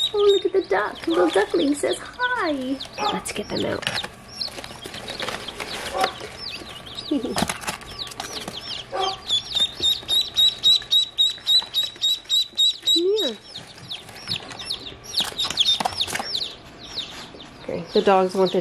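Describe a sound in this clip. Baby chicks peep rapidly in high, shrill chirps.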